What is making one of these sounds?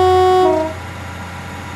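A diesel train sounds a two-tone horn.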